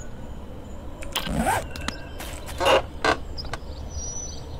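Soft game menu clicks and swishes sound as an inventory opens and closes.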